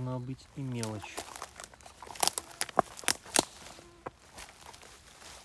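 Footsteps rustle through grass and twigs underfoot.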